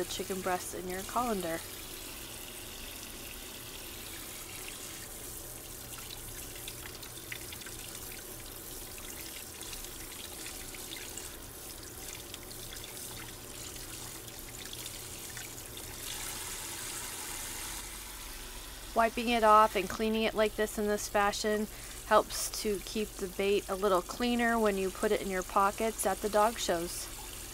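Water runs from a tap and splashes into a metal sink.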